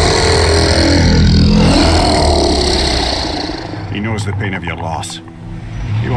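A huge serpent growls with a deep, rumbling voice.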